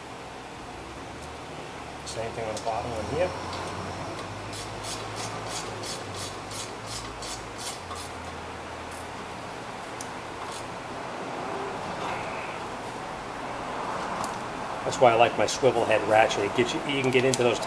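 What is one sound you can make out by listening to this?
Metal tools clink and scrape against a brake assembly.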